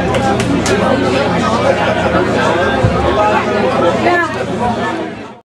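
A band plays loud music with electric guitars.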